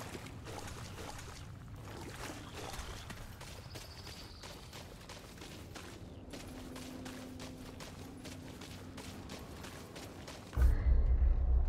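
Footsteps crunch quickly through dry grass.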